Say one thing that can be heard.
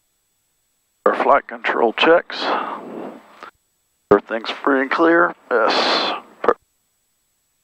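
A man speaks calmly and close up through a headset microphone.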